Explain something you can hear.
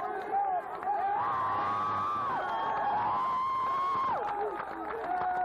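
A crowd cheers loudly as a game begins.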